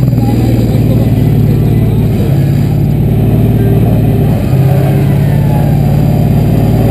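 An off-road vehicle's engine roars and revs hard, dipping briefly between gear changes.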